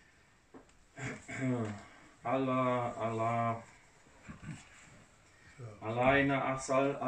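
An elderly man chants through a microphone in an echoing room.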